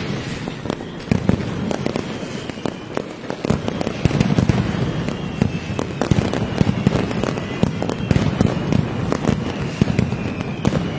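Firecrackers explode in rapid, loud bursts, echoing between buildings.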